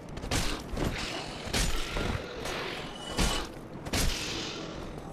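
Swords clash and strike metal shields in sharp, ringing blows.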